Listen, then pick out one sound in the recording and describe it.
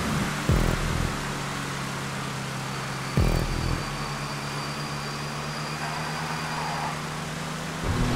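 A race car engine drones steadily at high revs, with brief jumps in pitch as gears shift.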